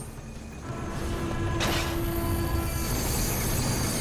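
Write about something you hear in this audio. A train rushes past with a loud whoosh.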